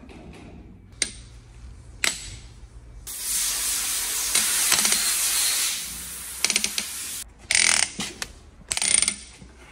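A ratchet torque wrench clicks while tightening cylinder head bolts.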